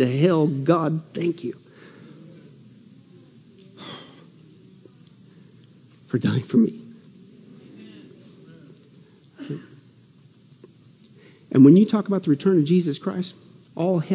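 A middle-aged man speaks slowly and deliberately through a microphone, with long pauses.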